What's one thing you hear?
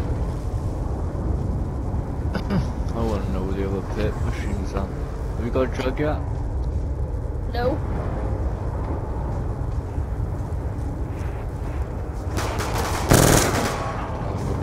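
An explosion booms loudly nearby.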